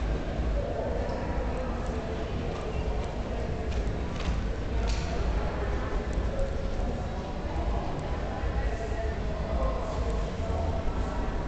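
A horse's hooves thud softly on dirt.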